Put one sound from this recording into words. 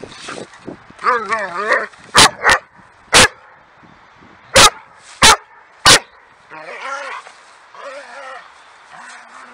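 A dog whines in a high, wavering voice.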